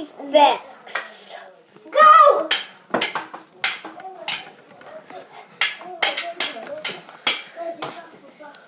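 A young girl speaks close to the microphone with animation.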